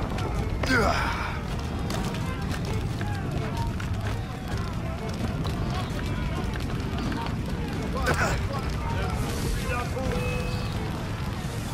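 Fires crackle and roar steadily.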